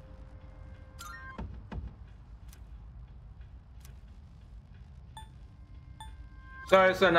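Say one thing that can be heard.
Short electronic chimes sound as a game menu is moved through.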